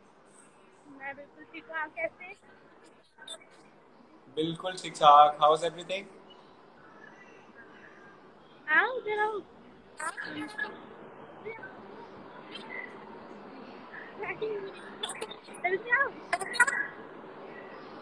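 A young woman laughs and talks through an online call.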